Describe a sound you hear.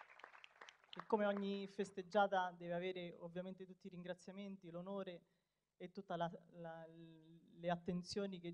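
A woman speaks into a microphone through loudspeakers.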